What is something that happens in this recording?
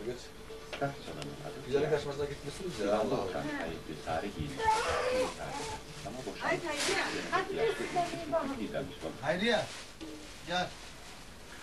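Women talk nearby in a small room.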